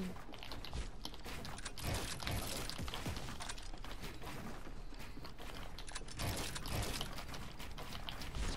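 Building pieces snap and clatter into place in quick bursts.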